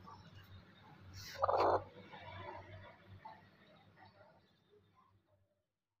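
A hen clucks softly close by.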